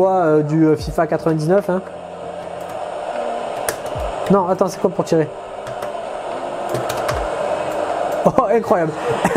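Arcade buttons click under quick presses.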